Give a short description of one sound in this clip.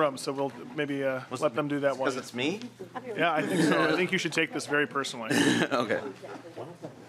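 A man speaks loudly through a microphone in a large room.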